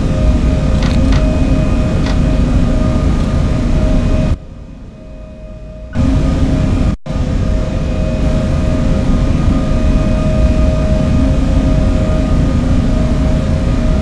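Train wheels rumble and clatter over the rails.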